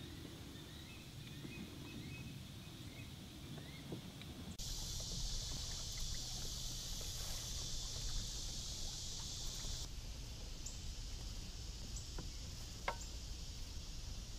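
Water laps gently against the hull of a small boat.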